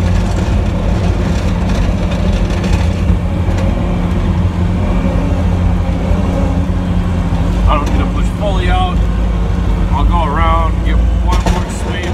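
A snowplow blade scrapes over the road.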